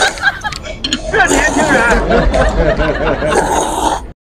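A man slurps noodles.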